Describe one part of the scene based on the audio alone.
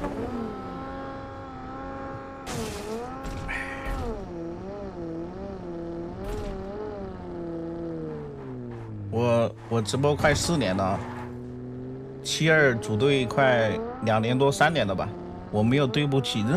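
A car engine hums and revs, rising and falling in pitch.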